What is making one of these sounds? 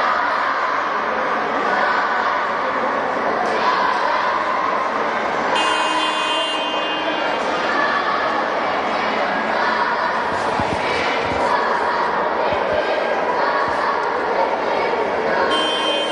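A large crowd chatters and cheers, echoing through a big indoor hall.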